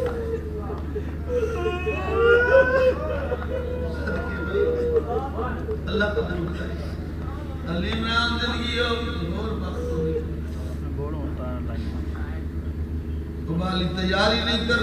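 A middle-aged man speaks with feeling into a microphone, heard through a loudspeaker.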